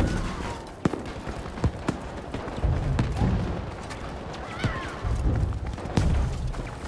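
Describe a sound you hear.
Gunshots crack sharply now and then.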